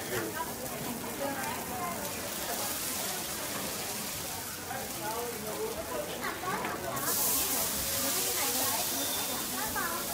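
Food sizzles in hot pans.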